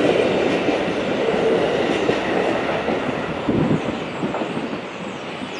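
A train rumbles past close by and fades away.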